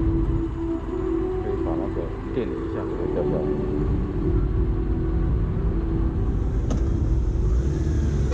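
A motorcycle engine idles close by with a low steady rumble.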